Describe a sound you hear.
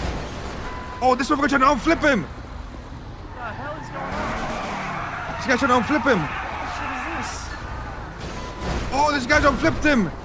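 A young man talks loudly and with animation into a close microphone.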